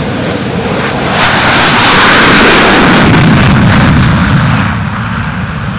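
A jet plane roars past at close range on a runway.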